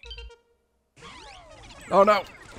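A bright game chime sparkles as a gem is collected.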